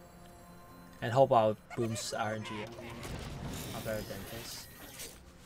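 A young man speaks briefly with animation into a close microphone.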